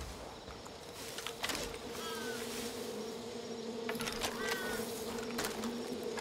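Leafy branches rustle as someone pushes through them.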